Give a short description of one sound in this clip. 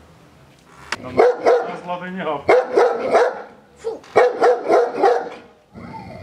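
A dog barks repeatedly nearby.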